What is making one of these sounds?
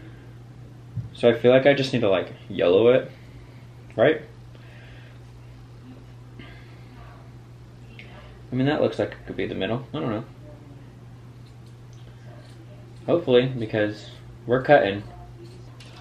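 A young man talks calmly and close by, in short bursts.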